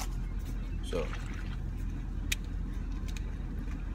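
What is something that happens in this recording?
Plastic wrapping crinkles and clicks in a man's hands.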